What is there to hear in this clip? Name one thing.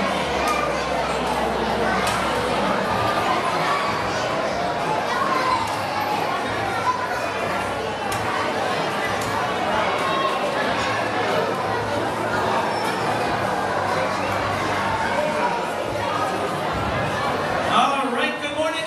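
A crowd of children and adults chatters in a large echoing hall.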